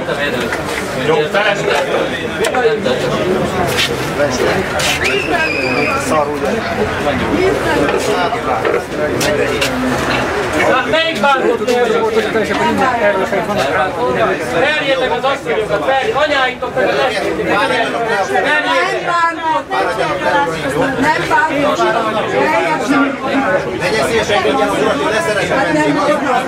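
A crowd of men and women talk over one another close by, loud and agitated.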